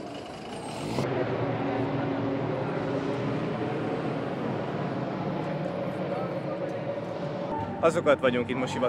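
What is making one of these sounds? A group of people murmurs and chatters outdoors.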